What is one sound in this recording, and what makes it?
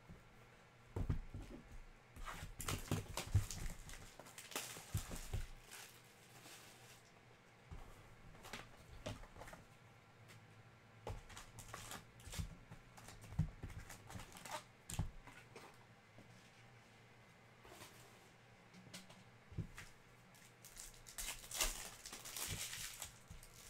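Plastic wrapping crinkles and rustles as hands handle packs.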